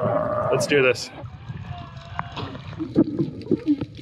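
Sea water laps and splashes.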